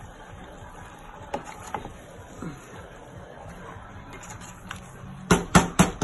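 A wooden spoon stirs and scrapes food in a metal pot.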